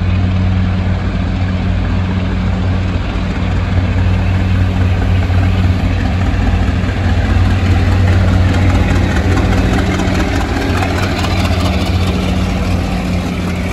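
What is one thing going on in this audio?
A diesel locomotive engine rumbles with a low steady drone as it approaches.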